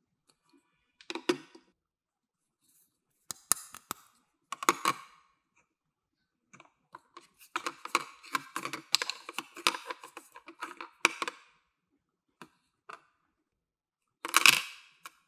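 Small plastic toy pieces click and clatter as they are handled.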